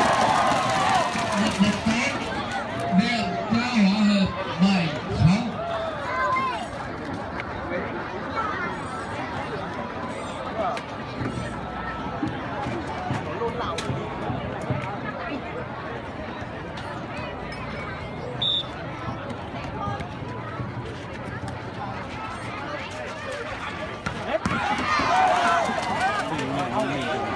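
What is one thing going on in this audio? Nearby spectators shout excitedly.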